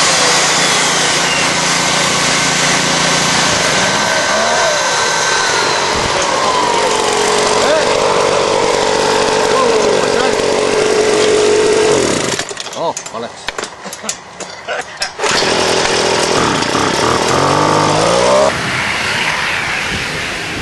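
A small gas turbine jet engine whines at idle close by.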